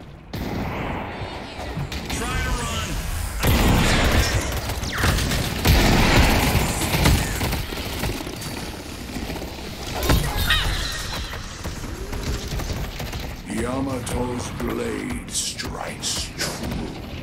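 Gunshots and blasts crack and boom in quick bursts.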